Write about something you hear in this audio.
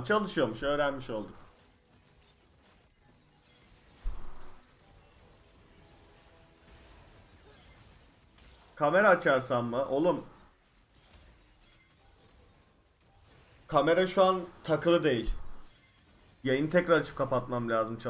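Game battle effects whoosh and clash.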